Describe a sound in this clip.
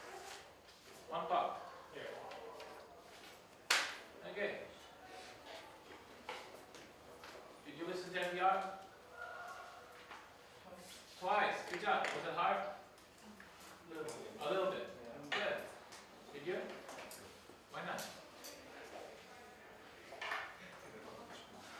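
A man lectures at a distance in a room with some echo, speaking calmly with pauses.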